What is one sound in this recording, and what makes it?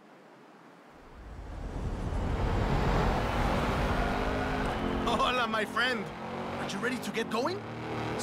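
An off-road car engine revs hard and roars.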